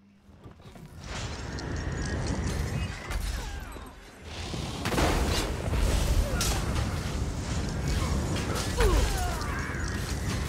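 Magic spells crackle and burst in a loud fight.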